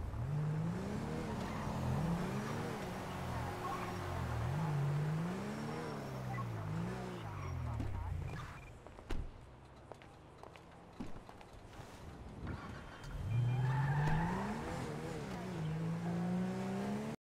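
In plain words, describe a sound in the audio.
A car engine revs up and down as the car drives.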